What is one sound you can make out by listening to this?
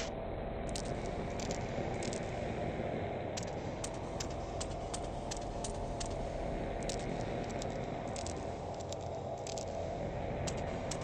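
Footsteps tap slowly on hard stairs and floor.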